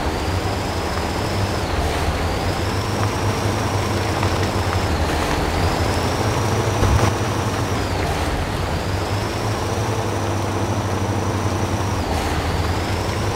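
Tyres squelch through mud.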